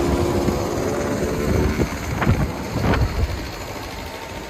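A motor scooter engine hums as the scooter rides past nearby.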